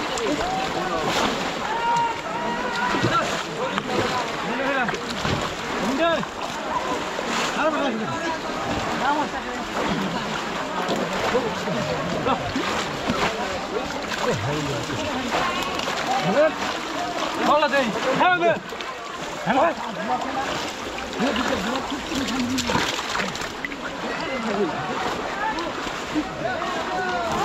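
Several men talk with animation close by, outdoors.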